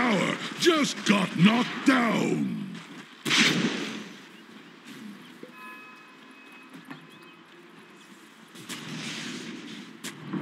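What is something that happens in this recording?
Weapons clash and spells burst in a video game battle.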